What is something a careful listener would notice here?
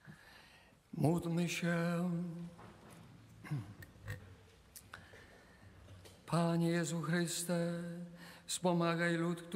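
An elderly man chants in a sung voice through a microphone, echoing in a large hall.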